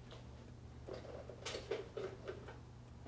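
Dishes clink and rattle close by.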